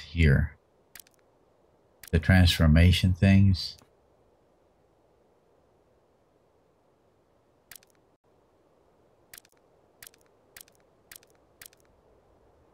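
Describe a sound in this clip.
Short, sharp clicks sound as items are moved around in a game menu.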